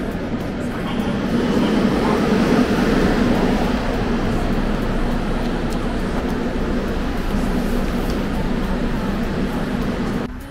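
A subway train rumbles steadily along the tracks.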